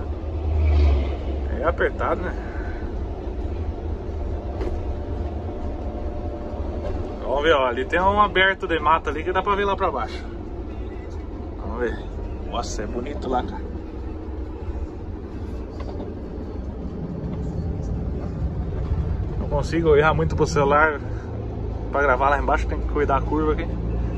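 A truck engine drones steadily as the truck drives along a winding road.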